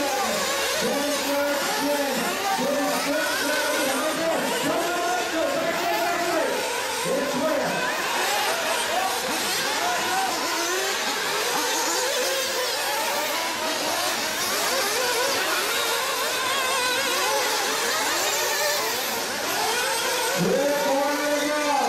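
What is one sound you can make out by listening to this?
A small model car's motor whines as it races over dirt.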